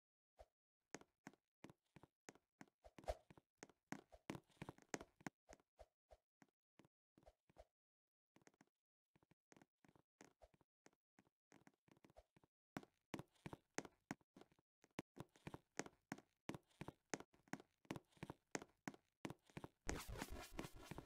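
Quick footsteps patter along steadily.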